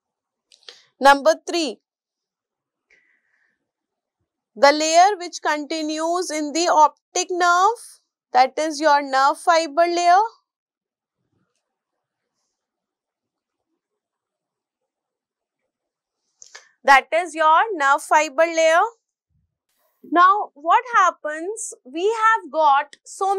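A woman speaks calmly and clearly into a close microphone, in short bursts with pauses.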